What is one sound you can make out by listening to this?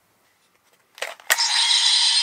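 A plastic click snaps sharply.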